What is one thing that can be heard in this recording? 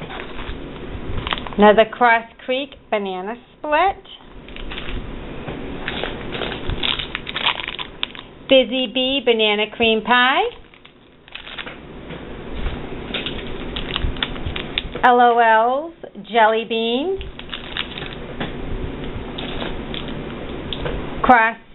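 Plastic wrappers crinkle and rustle as they are handled.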